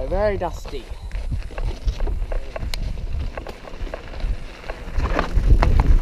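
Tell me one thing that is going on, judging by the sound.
Mountain bike tyres crunch and rattle over a rocky dirt trail.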